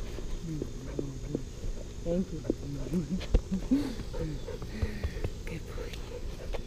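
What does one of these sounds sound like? A dog whines and grumbles close by.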